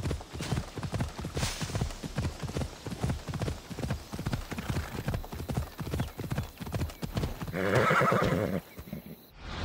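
Horse hooves pound the ground at a fast gallop.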